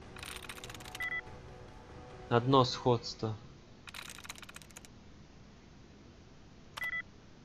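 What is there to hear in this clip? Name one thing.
A terminal gives a short electronic beep.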